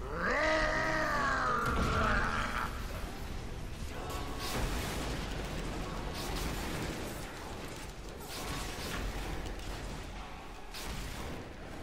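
Magic blasts crackle and boom in a game battle.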